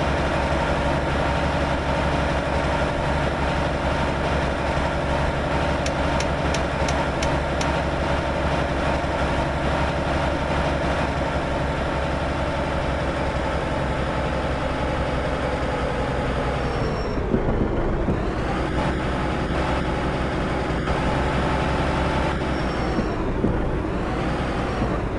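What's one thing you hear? A bus engine hums steadily, then drops in pitch as the bus slows down.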